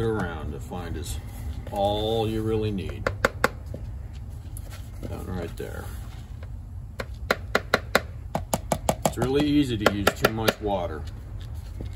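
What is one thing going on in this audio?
A metal spoon scrapes and taps against a plastic cup.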